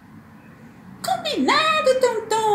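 A plush toy gives out a loud electronic meow.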